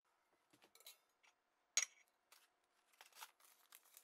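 A mug is set down on a hard counter with a clunk.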